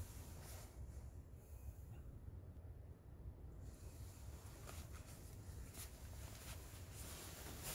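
Fabric rustles as hands handle a jacket.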